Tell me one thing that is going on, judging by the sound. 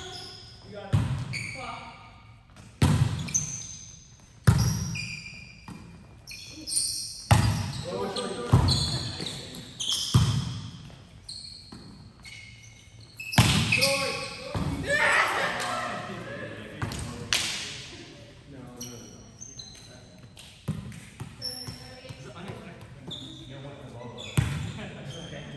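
A volleyball thuds off players' hands and forearms, echoing in a large hall.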